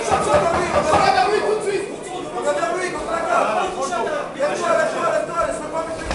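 A man shouts instructions close by.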